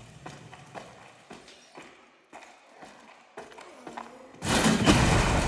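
Footsteps crunch on a gravelly dirt floor.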